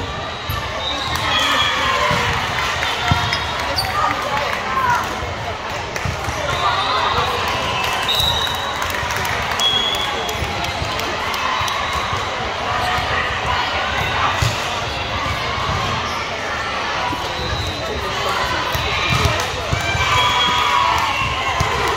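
Young girls call out to each other on the court.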